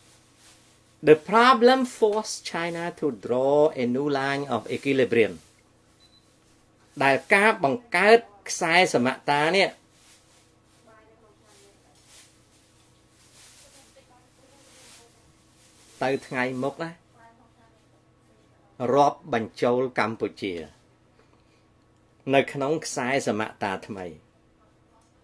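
A middle-aged man speaks with animation close to a microphone, pausing often.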